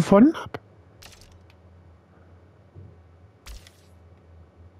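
Short electronic menu sounds click and swish as pages change.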